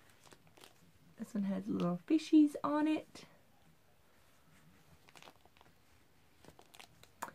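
Paper envelopes rustle softly in a woman's hands.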